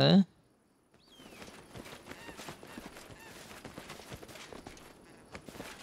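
Footsteps tread softly through grass.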